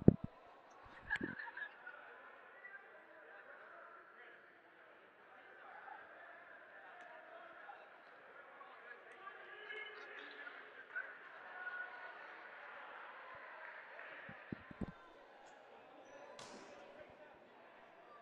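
Players call out and chatter faintly in a large echoing hall.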